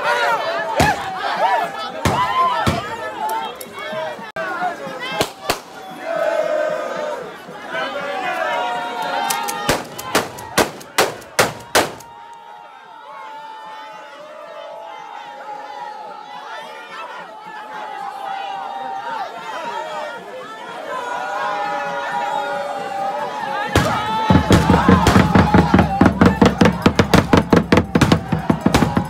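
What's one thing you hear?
A crowd of men and women sings and chants loudly outdoors.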